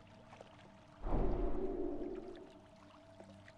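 A magic spell bursts with a deep, booming whoosh that slowly fades.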